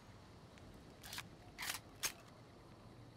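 A pistol magazine is reloaded with sharp metallic clicks.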